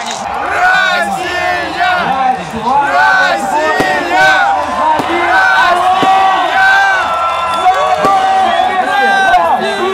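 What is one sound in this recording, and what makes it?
A crowd cheers and chants.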